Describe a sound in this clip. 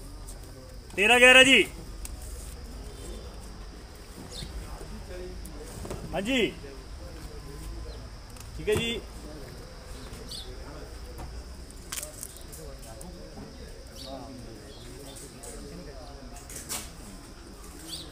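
Several men talk nearby, with a few loud calls among them.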